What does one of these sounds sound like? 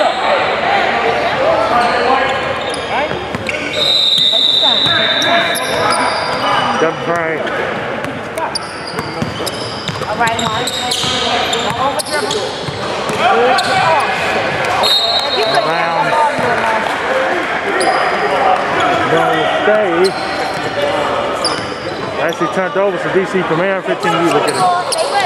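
Spectators chatter and call out in an echoing gym.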